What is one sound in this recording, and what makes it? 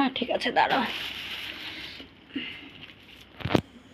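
A plastic bag thumps onto a hard floor.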